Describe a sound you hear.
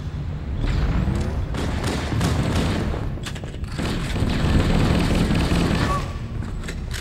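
Game gunfire and explosions crackle and boom.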